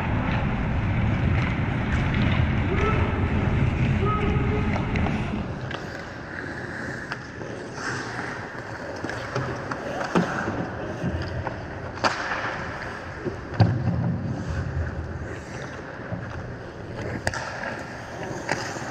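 Skate blades scrape and hiss across ice.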